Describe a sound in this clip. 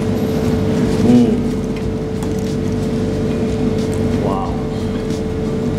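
A man hums and murmurs with pleasure while chewing, close by.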